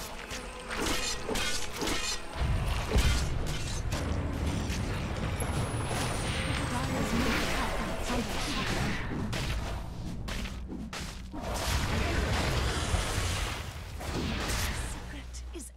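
Magic blasts and weapon strikes clash in a fantasy battle.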